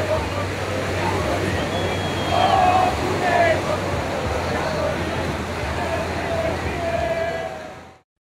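A crowd of young men and women cheers and shouts excitedly outdoors.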